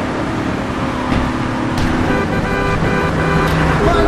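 A car collides with another car with a thud.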